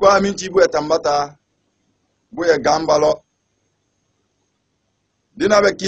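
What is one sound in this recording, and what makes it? A man speaks calmly and clearly into a close microphone, with pauses.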